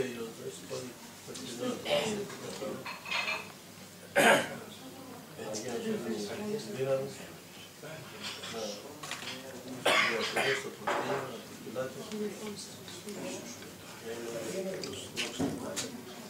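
An elderly man speaks calmly nearby.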